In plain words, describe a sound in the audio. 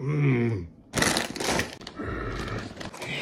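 A young man growls loudly, close by.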